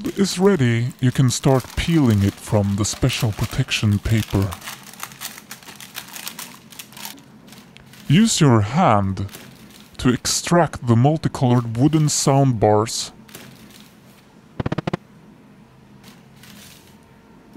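Baking paper crinkles as it is peeled away.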